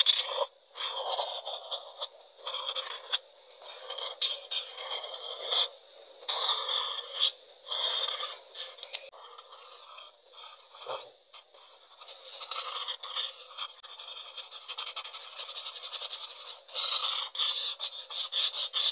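A felt-tip marker squeaks and scratches across paper in short strokes.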